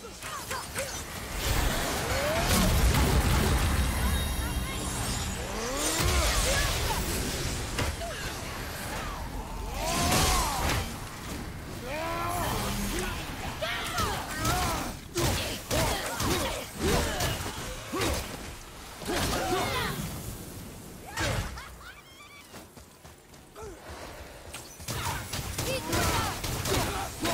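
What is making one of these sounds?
Creatures shriek and snarl in rising and falling cries.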